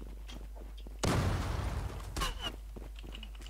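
A smoke grenade hisses as it bursts.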